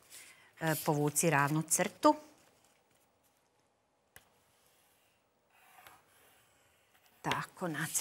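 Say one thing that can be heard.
A woman speaks calmly into a microphone nearby.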